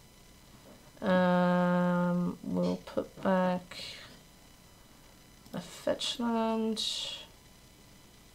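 A young woman speaks close to a microphone, with animation.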